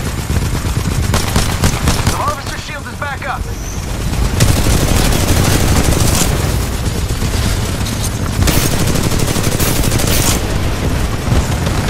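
Rifle gunfire rattles in rapid bursts.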